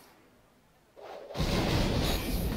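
A card game plays a loud burst of sound effects.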